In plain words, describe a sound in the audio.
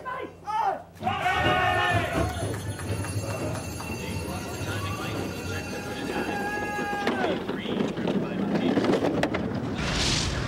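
Bobsleigh runners scrape and rumble over ice.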